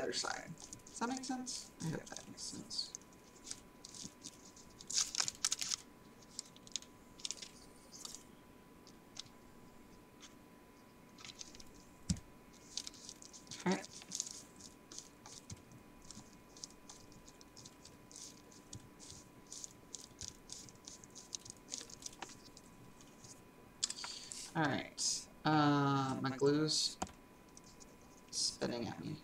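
Paper crinkles and rustles as it is folded and pressed flat.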